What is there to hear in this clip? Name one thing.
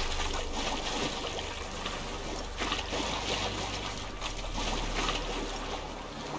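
Water splashes as someone wades through a shallow marsh.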